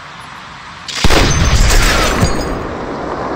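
A sniper rifle fires a loud shot that echoes away.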